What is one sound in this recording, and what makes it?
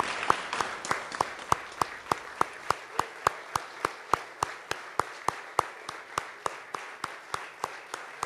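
A crowd claps steadily in rhythm.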